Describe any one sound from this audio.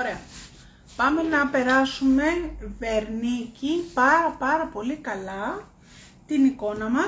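A middle-aged woman speaks calmly close by.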